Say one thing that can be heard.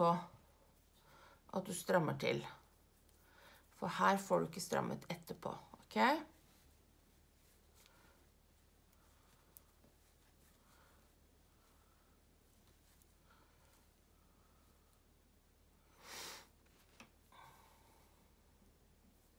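Knitting needles click softly.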